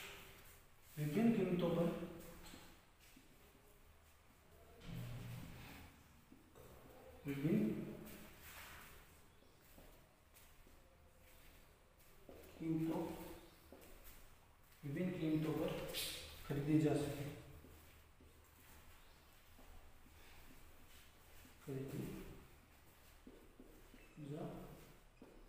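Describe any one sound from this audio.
A young man speaks slowly and clearly, as if teaching, close by.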